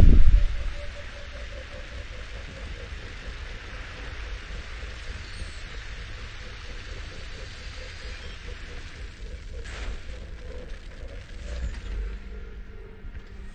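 A vehicle engine hums steadily with a low rumble.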